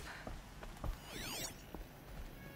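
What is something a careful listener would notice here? An electronic scanner sweeps with shimmering tones.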